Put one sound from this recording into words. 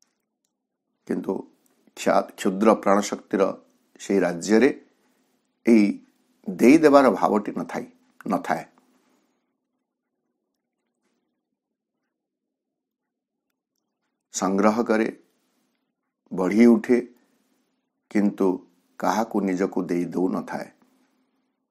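A middle-aged man speaks calmly and close to a microphone, with long pauses.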